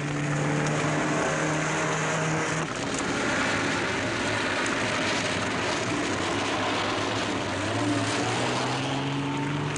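A car engine roars as it drives past at speed.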